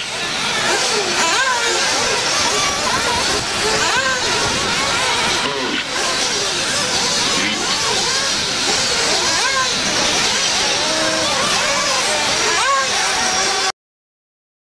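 A small model car engine whines loudly, revving up and down.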